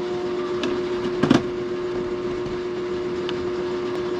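A plastic lid scrapes and clicks as it is twisted shut on a jar.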